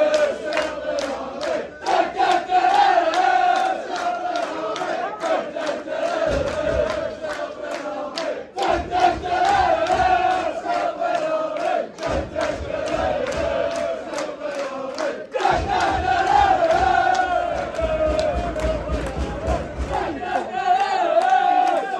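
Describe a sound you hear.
A crowd claps in rhythm.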